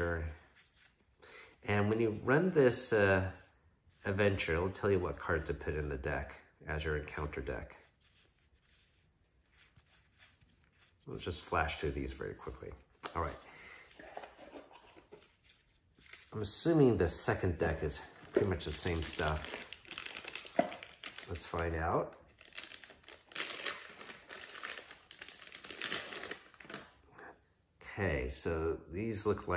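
Playing cards slide and flick against each other in someone's hands.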